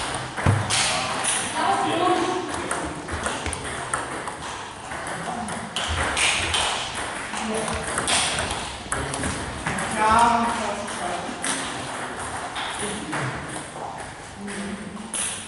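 A table tennis ball clicks back and forth on bats and a table in an echoing hall.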